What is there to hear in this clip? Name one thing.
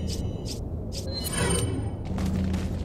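Menu selection beeps chime briefly.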